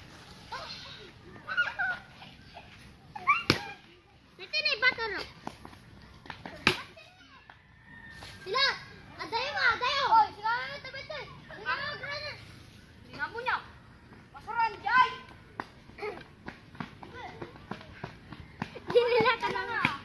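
Young children shout and call out to each other outdoors.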